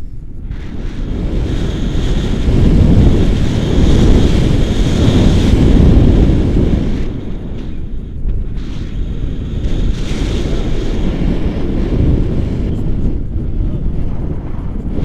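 Strong wind rushes and buffets loudly, outdoors high in the air.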